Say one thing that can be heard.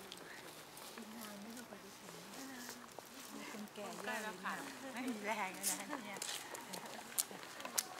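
Women chat and talk casually nearby, outdoors.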